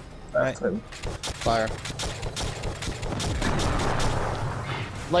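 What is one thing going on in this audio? Rapid gunfire crackles and pops.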